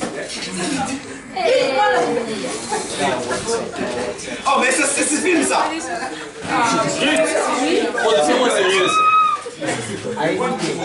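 A crowd of young people shouts and cheers excitedly in an echoing room.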